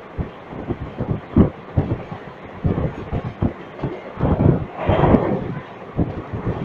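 A train rattles and clatters along the tracks at speed.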